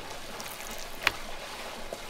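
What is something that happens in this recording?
A knife taps on a wooden board.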